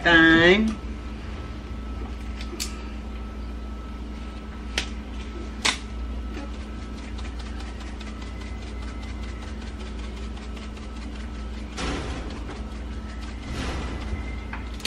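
A shaker rattles repeatedly.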